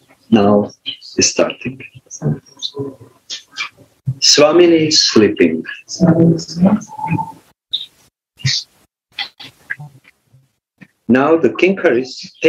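An elderly man speaks calmly through an online call, in bursts with short pauses.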